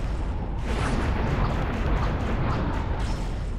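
Glass-like shards shatter and clatter.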